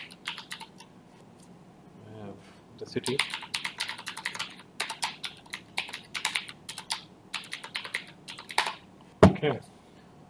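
Computer keys click rapidly in quick bursts.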